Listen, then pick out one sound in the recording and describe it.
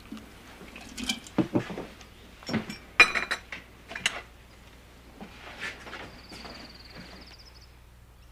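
Dishes and cups clink on a tray.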